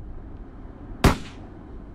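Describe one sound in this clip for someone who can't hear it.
A gun clicks sharply as it is loaded.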